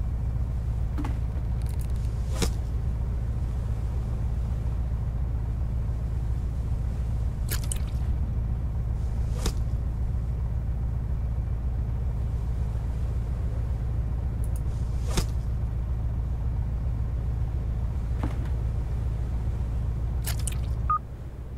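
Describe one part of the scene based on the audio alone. A fish thumps and slaps against a boat deck.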